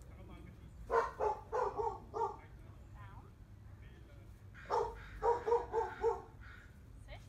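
A woman speaks brightly to a dog close by.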